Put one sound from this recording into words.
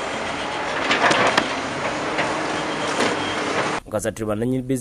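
A bulldozer engine rumbles.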